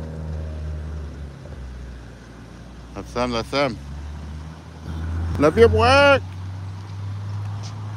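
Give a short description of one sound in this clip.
A car engine hums as a vehicle rolls slowly past close by.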